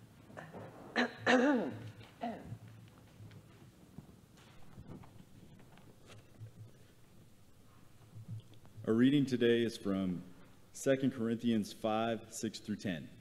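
A man speaks through a microphone in a large echoing hall, reading out calmly.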